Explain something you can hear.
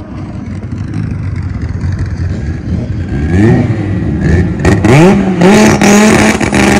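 A car engine rumbles loudly.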